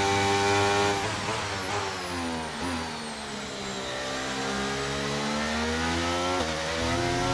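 A racing car engine drops in pitch as the car slows down, then revs up again.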